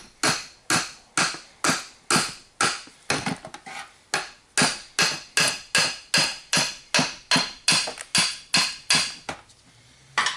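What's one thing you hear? A hammer strikes metal in quick, steady blows.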